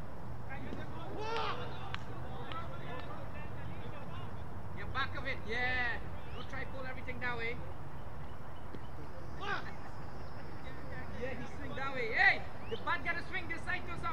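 Men shout and call out in the distance across an open field.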